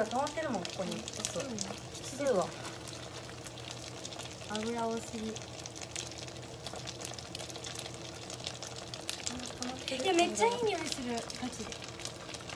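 Dumplings sizzle and crackle in a hot frying pan.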